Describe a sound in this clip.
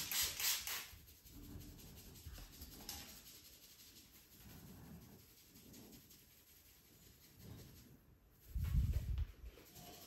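Fingers rustle and scratch through hair.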